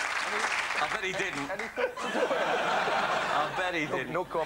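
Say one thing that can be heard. Men laugh close by.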